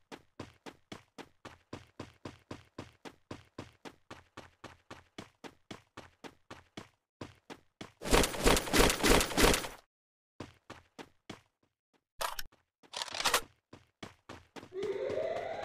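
Quick footsteps thud steadily as a character runs over grass.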